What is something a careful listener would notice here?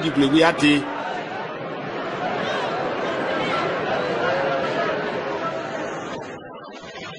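A crowd murmurs and calls out.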